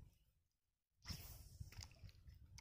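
A fishing line whooshes out as a rod is cast.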